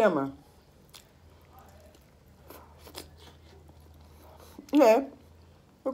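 A woman chews food with her mouth full.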